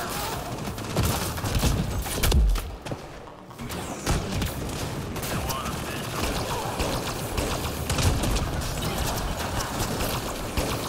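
Blasts and impacts boom loudly.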